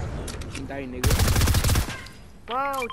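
Rapid gunfire bursts out in a quick volley.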